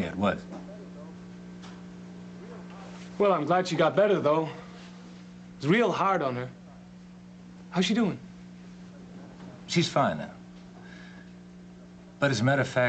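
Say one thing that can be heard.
A man speaks calmly and seriously, close by, in short bursts.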